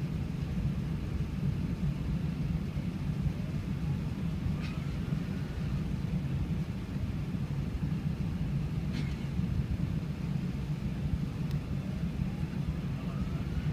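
Airliner jet engines rumble steadily, heard from inside the cabin.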